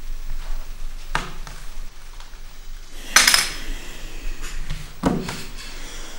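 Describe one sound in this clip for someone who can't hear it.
Small pegs click on a wooden board.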